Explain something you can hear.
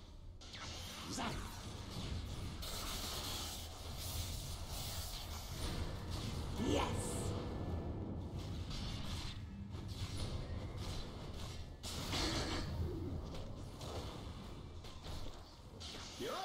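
Magic spells crackle and burst in a game.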